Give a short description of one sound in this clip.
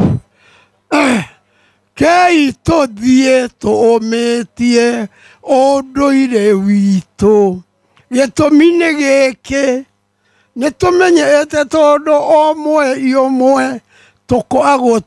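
An elderly man speaks loudly and with animation into a microphone.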